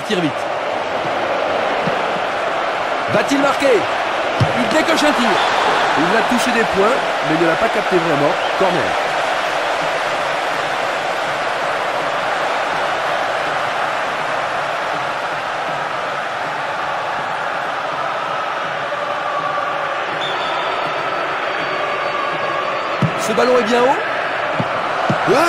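A large stadium crowd roars and murmurs.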